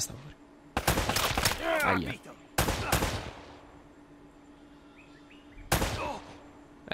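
Pistol shots ring out one by one.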